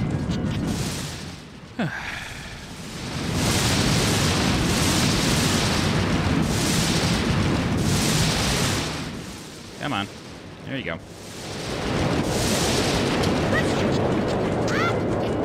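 Flames roar and crackle in loud, surging bursts.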